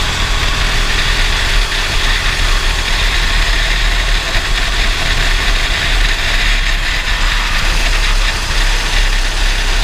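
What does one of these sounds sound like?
A racing kart engine buzzes at full throttle.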